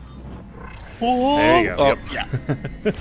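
An energy blast bursts with a rising, wavering electronic whoosh.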